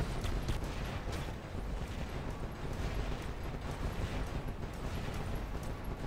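Game explosions boom and rumble.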